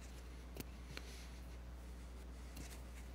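Papers rustle close by.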